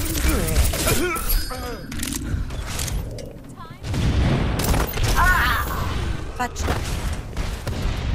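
A rifle fires sharp shots.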